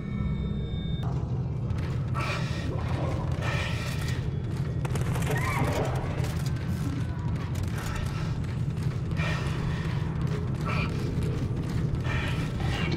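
Heavy boots thud steadily on a metal floor.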